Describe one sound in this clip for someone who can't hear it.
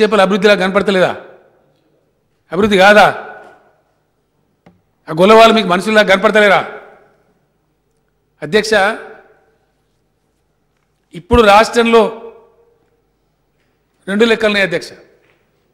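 An older man speaks calmly into a microphone, in short bursts with pauses.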